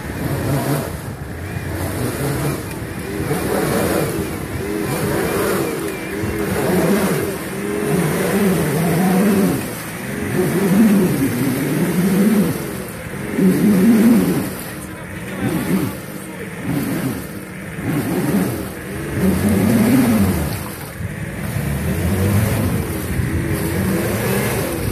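An off-road vehicle's engine revs hard, rising and falling.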